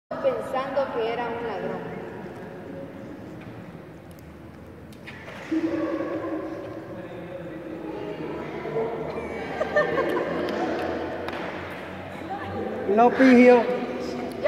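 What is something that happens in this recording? Young people talk and laugh nearby, with an echo.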